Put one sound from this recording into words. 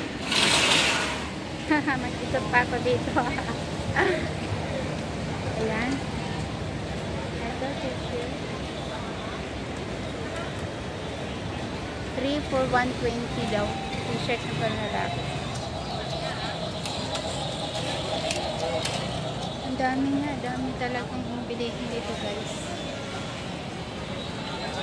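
A busy street crowd murmurs in the background.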